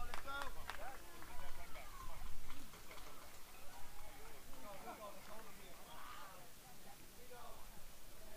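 Young players shout and call out across an open outdoor field.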